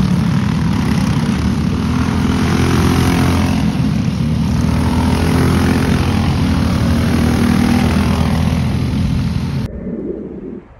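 A go-kart engine buzzes loudly as a kart races past.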